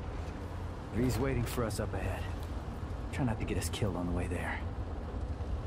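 A young man speaks in a low, tense voice close by.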